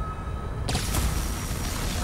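An energy sword hums and crackles with electricity.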